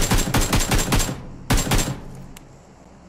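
Rapid gunfire rattles in short loud bursts.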